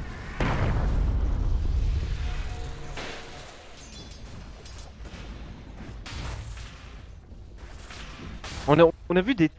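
Spells whoosh and crackle in a fantasy battle game.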